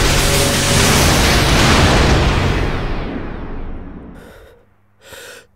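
A blade swishes through the air with a bright, ringing shimmer that slowly fades.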